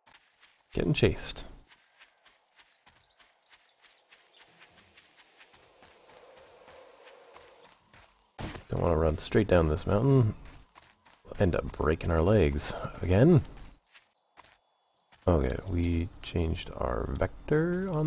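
Footsteps crunch through grass and brush.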